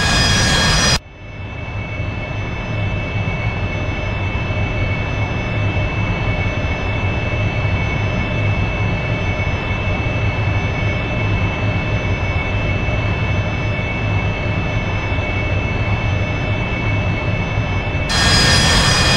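A jet engine hums and whines, muffled.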